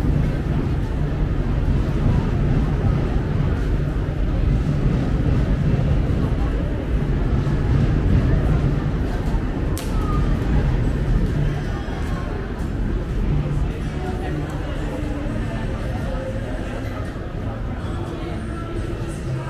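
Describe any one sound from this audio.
A crowd of people chatters all around under a low echoing roof.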